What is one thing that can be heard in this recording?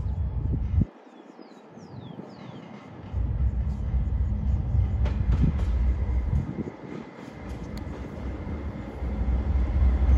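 Train wheels clatter on the rails.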